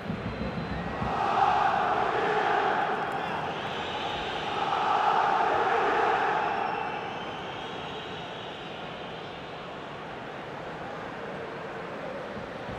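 A large stadium crowd roars and cheers in waves.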